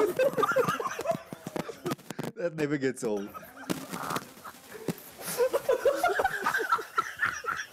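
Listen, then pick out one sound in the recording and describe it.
A man laughs heartily close to a microphone.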